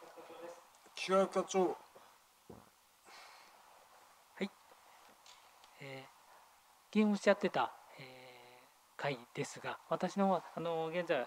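A second middle-aged man answers calmly into a microphone.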